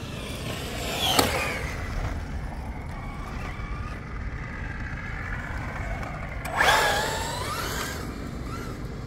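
Tyres of a small car screech on asphalt.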